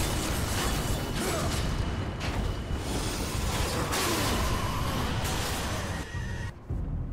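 Blades clash and heavy blows crash in a fast, loud fight.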